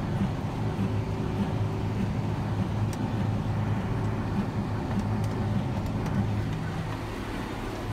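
A hay baler clatters and thumps.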